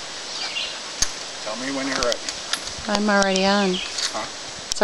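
A metal pole clanks and clicks.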